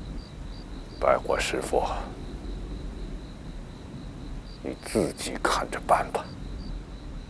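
A middle-aged man speaks calmly and quietly.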